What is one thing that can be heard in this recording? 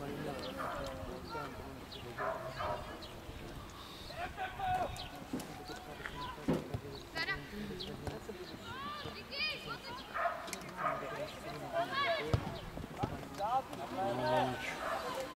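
Children shout and call out to each other across an open outdoor pitch.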